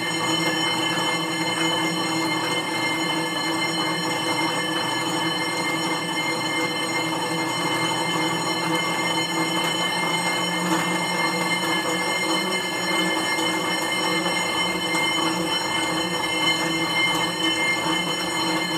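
An exercise bike whirs steadily as it is pedalled.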